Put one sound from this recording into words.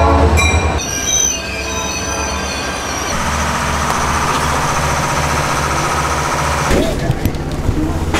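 A train engine hums steadily.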